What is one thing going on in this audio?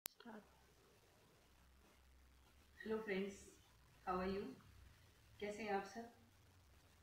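A young woman speaks calmly close by in short phrases.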